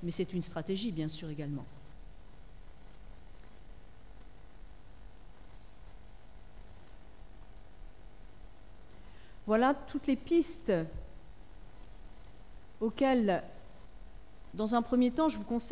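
A woman speaks calmly into a microphone, in pauses.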